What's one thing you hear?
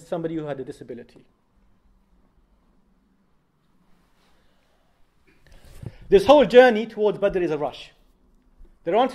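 A young man speaks calmly into a microphone, pausing between phrases.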